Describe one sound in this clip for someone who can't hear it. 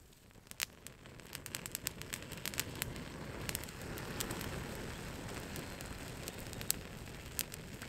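Flames roar as a fire flares up.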